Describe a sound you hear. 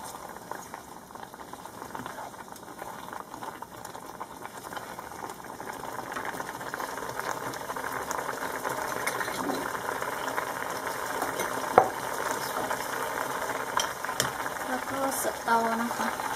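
A spoon stirs and scrapes through a thick sauce in a pot.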